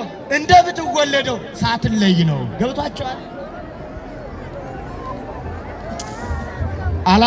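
A large crowd murmurs all around outdoors.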